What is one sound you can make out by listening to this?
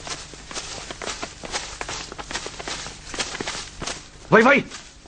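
Footsteps crunch through undergrowth.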